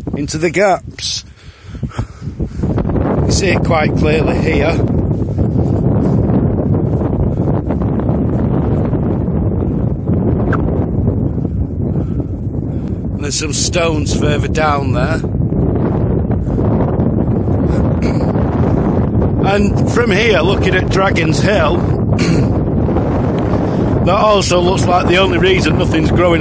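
Wind buffets the microphone in blustery gusts outdoors.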